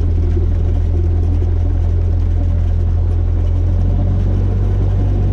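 A small plane's engine drones loudly and steadily.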